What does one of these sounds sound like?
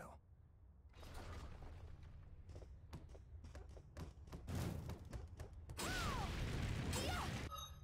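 Swords swish and clash in a fight.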